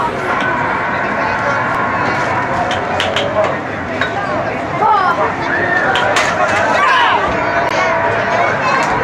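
Air hockey pucks clack against mallets and table rails.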